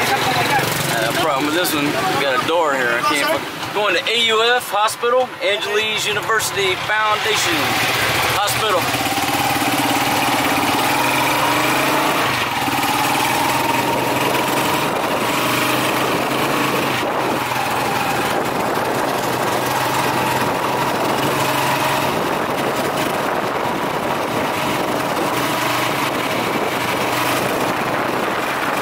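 A vehicle engine drones steadily from close by as it drives along a road.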